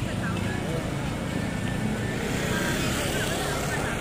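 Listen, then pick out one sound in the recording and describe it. A motor scooter rides past.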